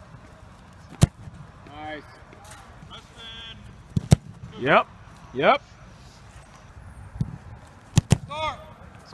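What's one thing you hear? A football is kicked hard with a sharp thump.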